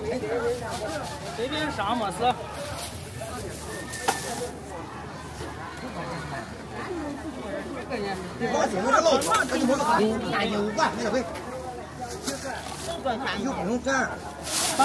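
Several adults talk nearby in an outdoor crowd.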